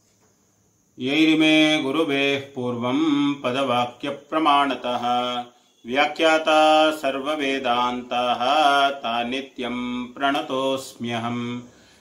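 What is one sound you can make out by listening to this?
An elderly man chants in a rising and falling melody close to a microphone.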